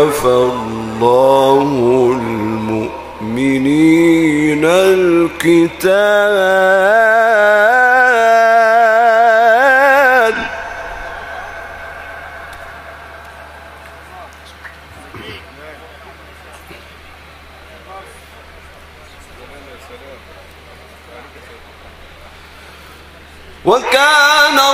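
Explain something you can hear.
A middle-aged man chants melodically into a microphone, his voice loud and echoing through loudspeakers, holding long wavering notes.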